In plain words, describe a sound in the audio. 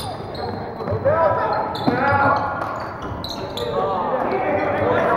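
Young players shout and call out across an echoing gym.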